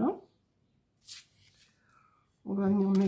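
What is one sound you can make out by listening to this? Card stock rustles and slides as it is folded open.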